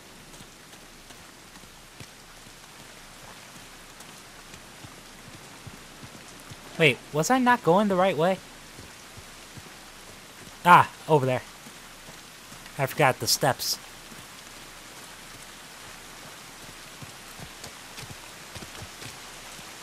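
Footsteps run lightly over grass and dirt.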